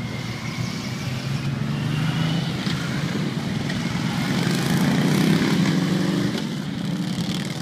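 Motorcycles rev and ride past, growing louder.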